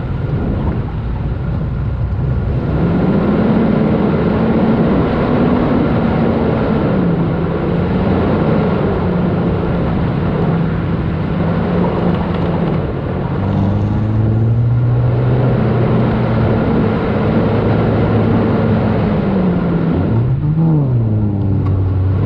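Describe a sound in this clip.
A car engine hums steadily close by, rising and falling in pitch as it drives.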